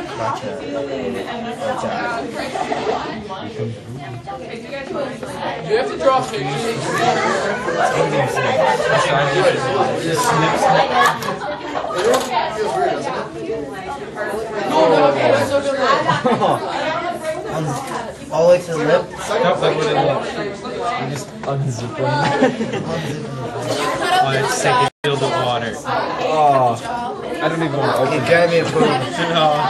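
Several teenage boys talk and laugh close by, over one another.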